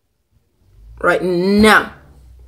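A boy makes a loud, wavering voice sound close by.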